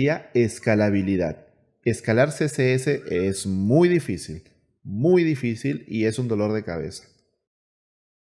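A man talks calmly and with animation into a close microphone.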